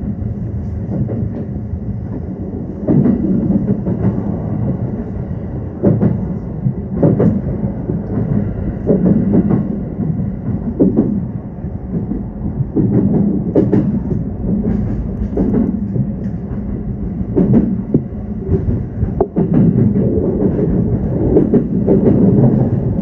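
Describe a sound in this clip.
Train wheels clack over rail joints and points.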